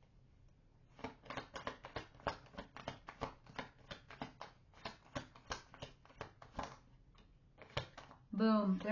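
Cards shuffle and riffle quickly.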